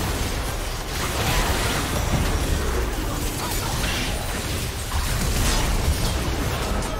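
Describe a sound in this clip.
Game spell effects crackle and burst in a busy fight.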